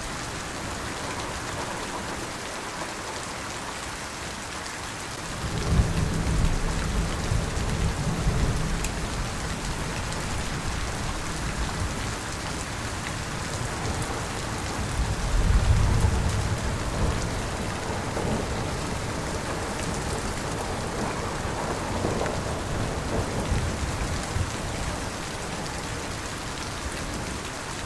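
Heavy rain pours down steadily outdoors.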